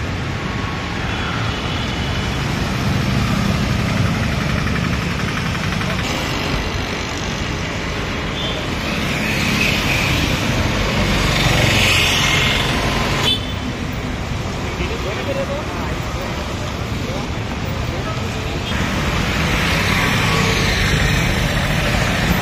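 Traffic rumbles along a busy road outdoors.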